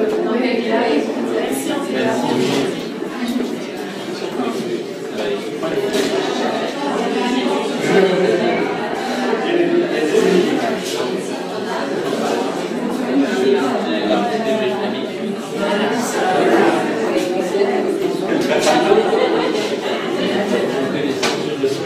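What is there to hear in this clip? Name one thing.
A crowd of men and women chatters all around in a busy room.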